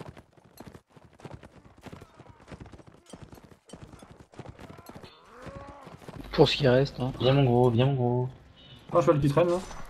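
A horse gallops with hooves thudding on grass.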